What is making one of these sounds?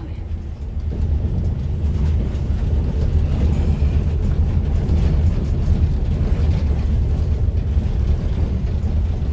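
Bus tyres rumble over cobblestones.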